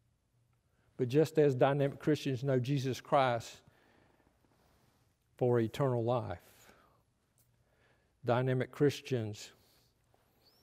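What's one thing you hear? An elderly man speaks calmly and slowly through a microphone, with pauses.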